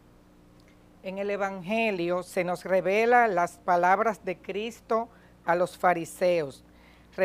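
A woman reads out through a microphone in an echoing hall.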